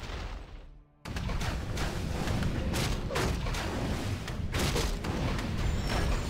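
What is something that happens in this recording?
Weapons clash and clang in a busy battle.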